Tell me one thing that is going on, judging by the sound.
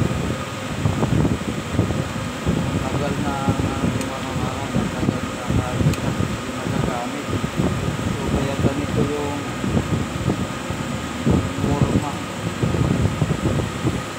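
Metal tools clink and scrape against a metal machine part.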